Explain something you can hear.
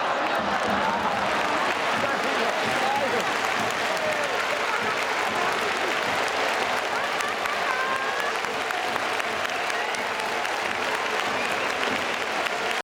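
A large stadium crowd chants and cheers loudly.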